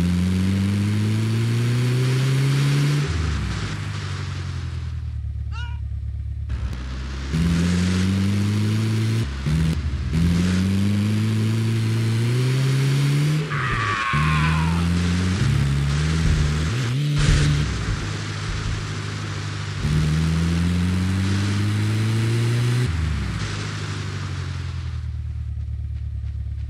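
An engine revs up and down repeatedly as a vehicle drives over rough ground.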